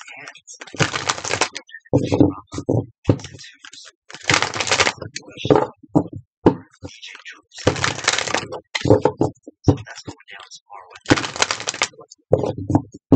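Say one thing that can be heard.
Playing cards riffle and flutter as they are shuffled by hand, close by.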